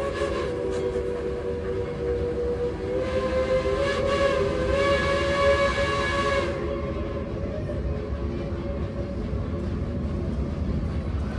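A train rumbles and clatters steadily along a curving track.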